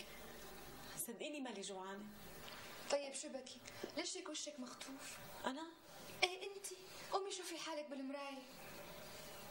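A woman speaks with emotion, close by.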